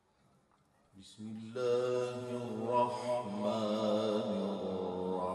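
A man recites in a long, drawn-out chant through a microphone and loudspeakers.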